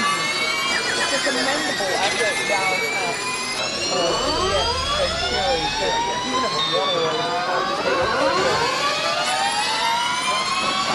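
A racing car engine whines at high revs, its pitch rising through the gears.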